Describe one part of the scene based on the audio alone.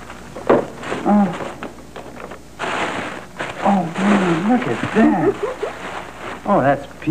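A woman speaks nearby in a calm, warm tone.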